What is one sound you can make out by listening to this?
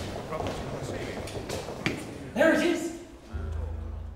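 Footsteps echo on stone stairs.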